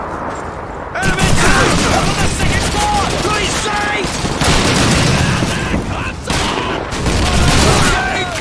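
A machine gun fires bursts of rapid shots.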